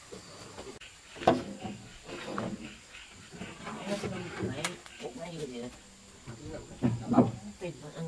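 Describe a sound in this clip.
A broom scrubs a wooden floor.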